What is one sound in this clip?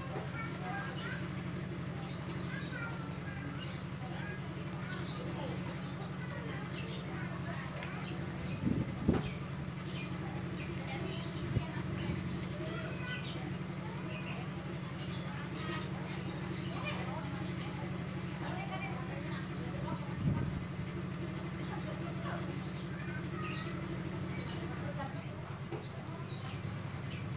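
A small bird chirps and twitters in short high bursts.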